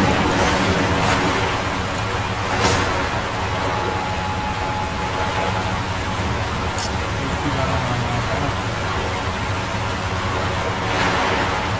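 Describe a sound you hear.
Someone splashes while swimming through water.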